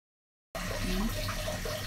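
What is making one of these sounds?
Water splashes softly in a small tub.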